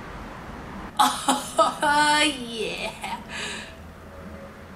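A young woman speaks loudly and with animation, close to a microphone.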